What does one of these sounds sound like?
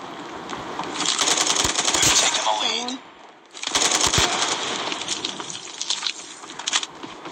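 A rifle fires rapid bursts of gunfire.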